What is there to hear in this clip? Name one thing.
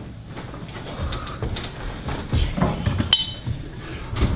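Footsteps thud across a wooden stage floor.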